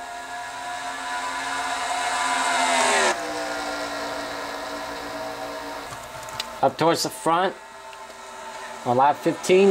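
Race car engines whine loudly, rising in pitch and then dropping sharply as a car roars past.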